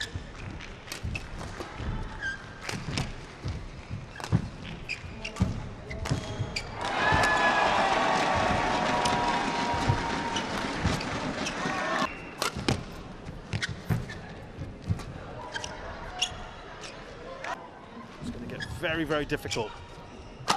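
Rackets smack a shuttlecock back and forth in a quick rally.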